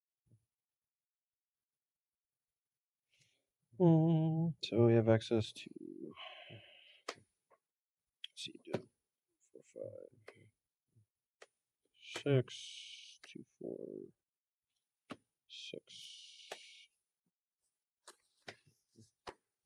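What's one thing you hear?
Playing cards tap and slide on a table.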